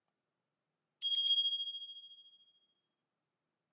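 A smart speaker plays a short high chime.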